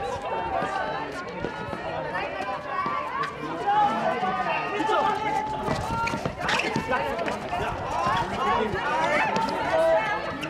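Young women shout and call out to each other across an outdoor court.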